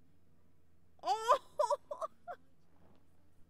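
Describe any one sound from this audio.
A young person groans.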